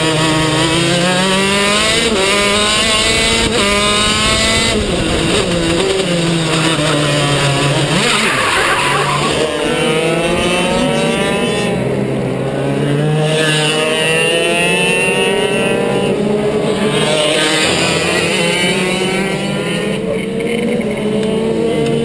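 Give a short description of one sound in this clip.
A go-kart engine buzzes loudly close by, its pitch rising and falling as it speeds up and slows down.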